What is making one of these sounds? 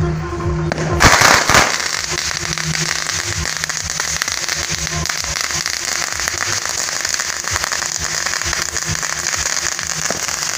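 Firecrackers crackle and pop in rapid bursts nearby.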